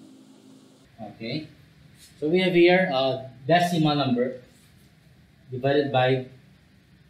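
A man speaks calmly, close by, explaining.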